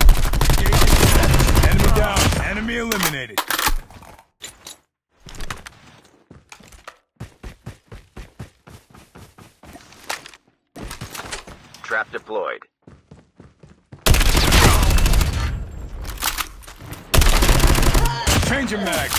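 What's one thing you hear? Rapid gunfire blasts loudly in bursts.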